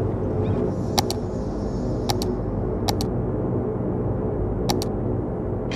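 Interface clicks sound sharply now and then.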